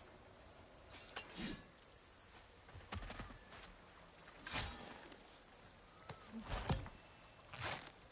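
Heavy footsteps thud on soft ground.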